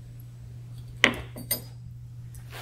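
A glass clinks on a wooden board.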